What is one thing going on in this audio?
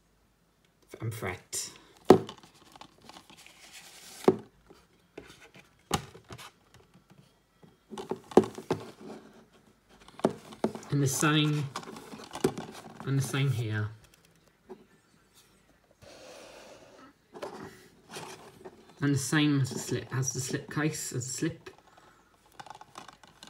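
A plastic disc case rubs and taps in a hand.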